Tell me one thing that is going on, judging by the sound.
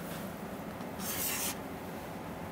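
Chalk scratches on a board.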